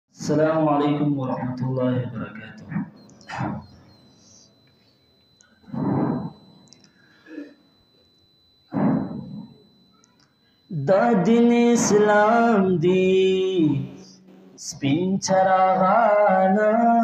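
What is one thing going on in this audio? A young man chants melodiously into a microphone, with pauses between phrases.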